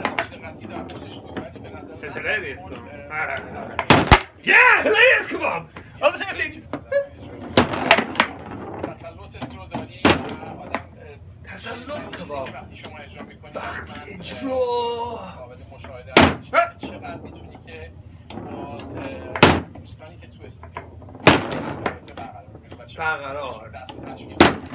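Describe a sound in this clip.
A foosball rattles and clacks as players' rods spin and strike it.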